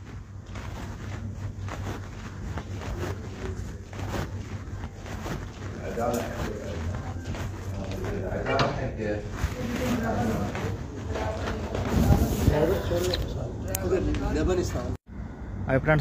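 Several men talk quietly in a room.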